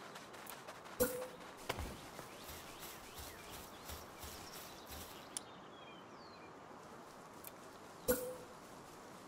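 A wooden wall knocks into place with a short thud.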